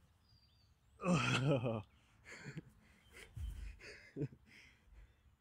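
A man speaks breathlessly close by.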